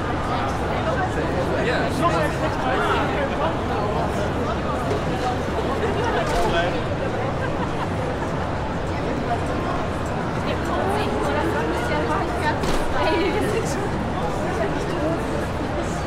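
Footsteps shuffle across a hard floor nearby.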